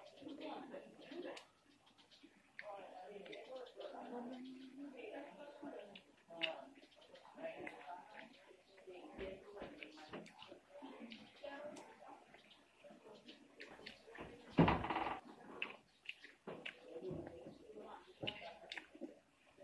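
A young woman chews and crunches fruit.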